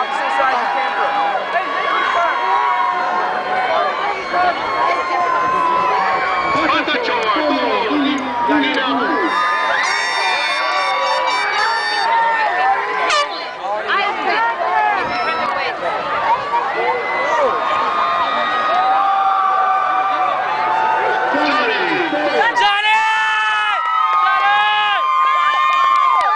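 A large crowd sings and cheers loudly outdoors.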